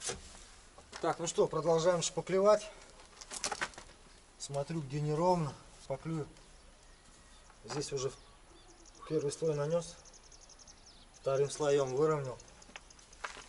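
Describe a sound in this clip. A man talks calmly, close by, outdoors.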